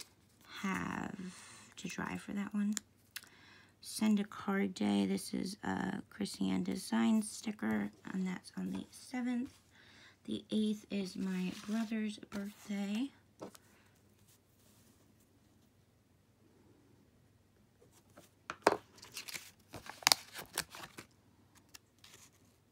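A sticker is peeled off its paper backing.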